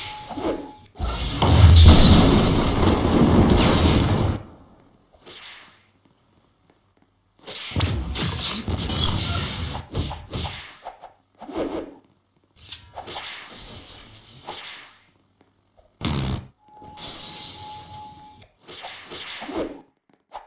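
Heavy punches land in rapid bursts with thuds and whooshes.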